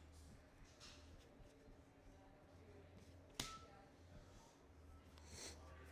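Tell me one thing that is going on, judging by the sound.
A plastic card sleeve crinkles.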